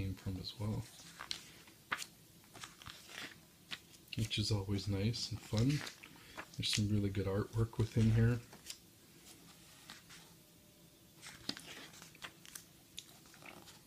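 Glossy book pages rustle and flip as they are turned by hand.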